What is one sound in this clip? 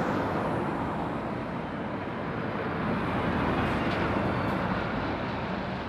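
A second lorry's engine roars as it passes close by.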